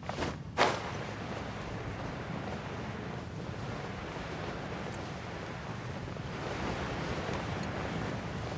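Wind rushes past during a glide.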